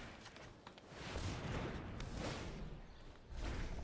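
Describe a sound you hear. A fiery magical whoosh sweeps past.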